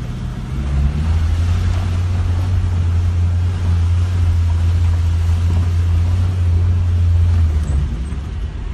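A car engine revs up, holds a steady roar, then drops back.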